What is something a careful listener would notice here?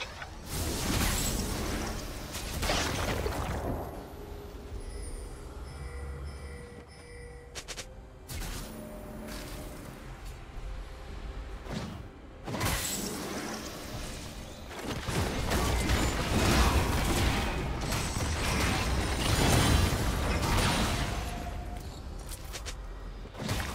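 Magic blasts whoosh and crash in a game battle.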